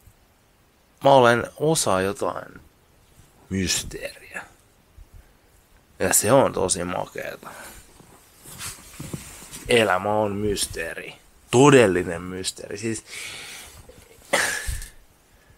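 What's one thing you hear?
A man talks calmly and expressively close to the microphone, with pauses.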